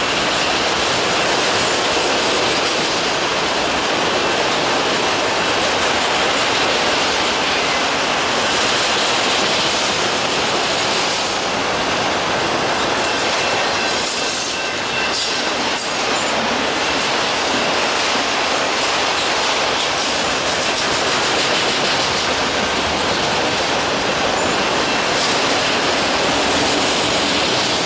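Freight car wheels clatter over rail joints.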